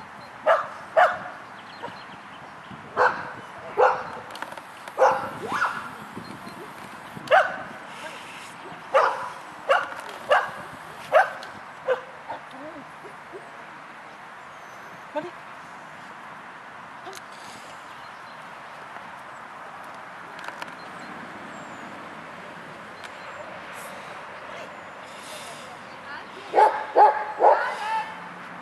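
A dog barks in short bursts.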